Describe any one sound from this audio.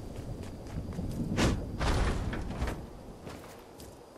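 A pickaxe strikes wood with hard knocks.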